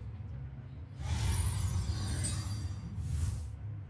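Game cards sweep away with a rushing magical whoosh.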